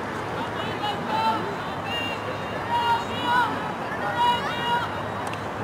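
Young women call out to each other.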